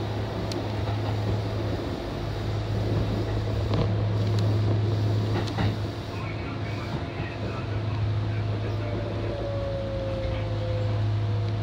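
A train hums steadily as it rolls along the tracks, heard from inside the cab.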